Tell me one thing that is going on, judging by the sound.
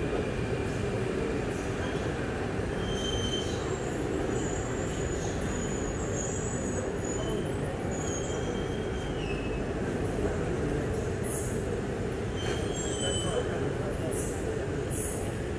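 A train rumbles steadily past close by, with a low roar.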